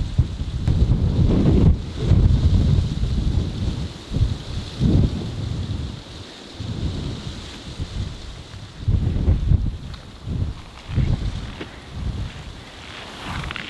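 Strong wind gusts roar outdoors.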